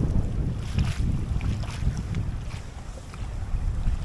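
A feeder splashes into the water.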